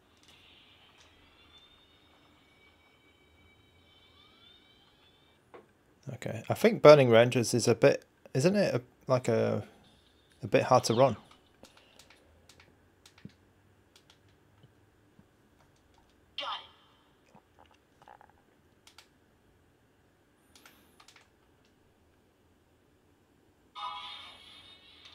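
A handheld game console plays game music and sound effects through its small speaker.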